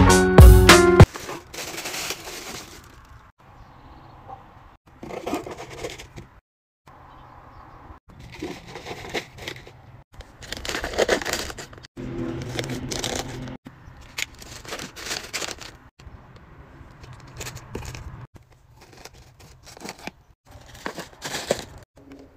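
Tissue paper and plastic wrapping rustle and crinkle.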